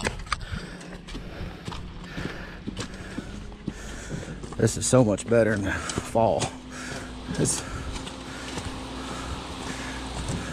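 Boots crunch on dirt and gravel as a worker walks.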